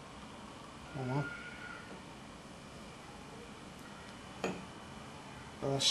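Beer sputters and hisses from a tap into a glass.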